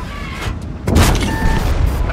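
A shell explodes with a heavy blast.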